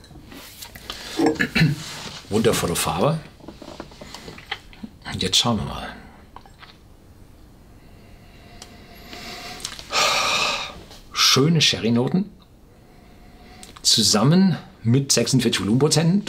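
An older man talks calmly and close by.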